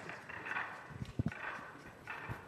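A cue strikes a billiard ball.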